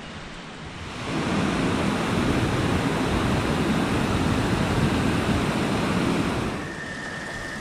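A waterfall splashes loudly into a pool.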